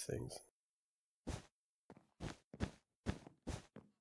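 Wooden blocks are placed with soft knocks.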